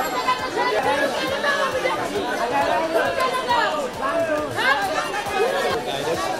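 A crowd of men and women talk loudly all at once nearby, outdoors.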